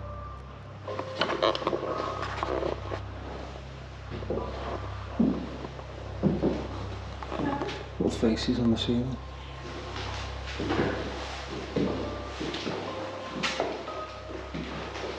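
A young man talks calmly, close by.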